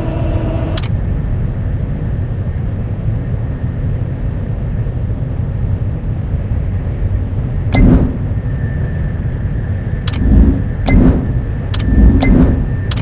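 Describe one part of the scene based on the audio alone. Heavy machinery rumbles steadily with a low drone.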